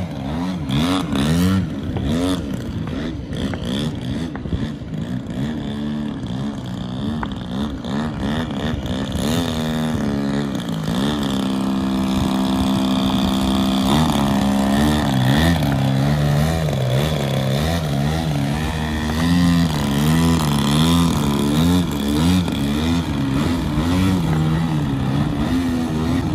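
A model airplane engine buzzes loudly, its pitch wavering up and down as it throttles.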